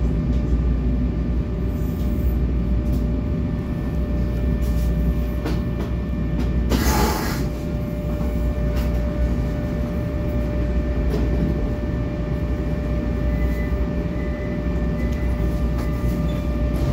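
A subway train's motors hum steadily at a station.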